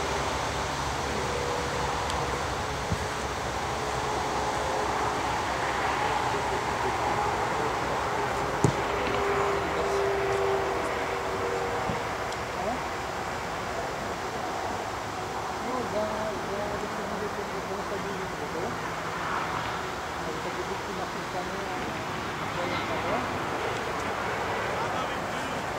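Wind blows across an open field outdoors.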